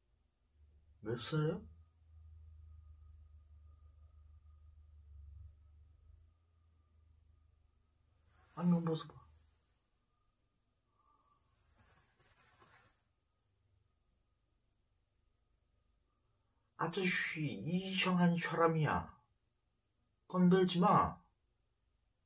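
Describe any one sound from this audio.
A young man speaks calmly and close by, in short bursts with long pauses.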